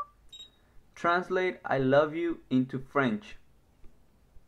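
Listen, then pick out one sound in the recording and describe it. A synthetic voice reads out an answer through a small phone speaker.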